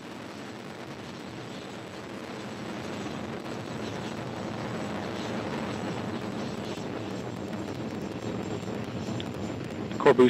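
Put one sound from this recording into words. A rocket engine roars with a deep, steady rumble that slowly grows louder.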